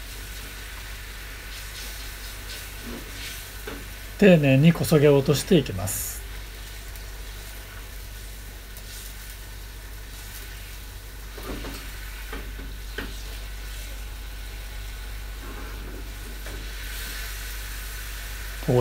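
A spatula scrapes against a metal pan.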